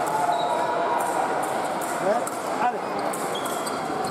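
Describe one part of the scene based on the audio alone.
Fencing blades click and clash together.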